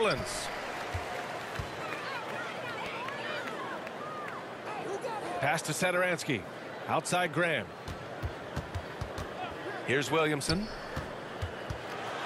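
A basketball thumps as it is dribbled on a hardwood floor.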